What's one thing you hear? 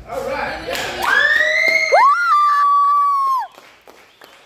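A young person cheers loudly.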